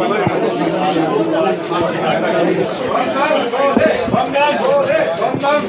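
Several men talk over one another in a crowd, close by.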